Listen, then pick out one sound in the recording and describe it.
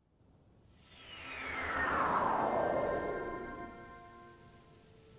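A shimmering magical whoosh sweeps down in pitch.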